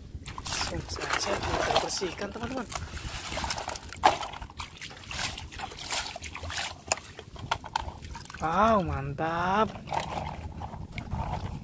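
Water splashes as a toy truck is pushed through it.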